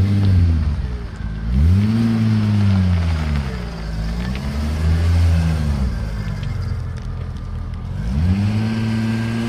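A car engine idles with a deep burble and revs up and down.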